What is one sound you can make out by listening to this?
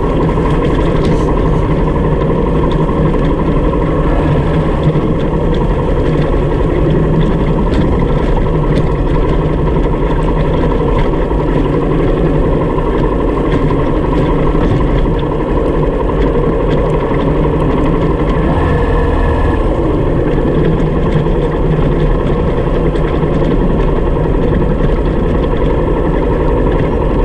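Tyres crunch and rattle over loose stones.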